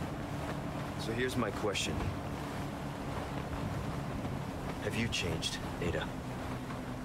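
A young man speaks calmly and quietly.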